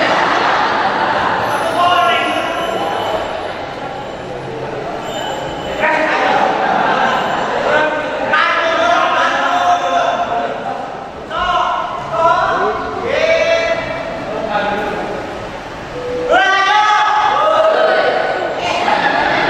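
A young man speaks with animation through a microphone in an echoing hall.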